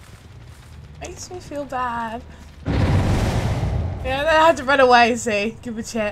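A woman talks with animation into a close microphone.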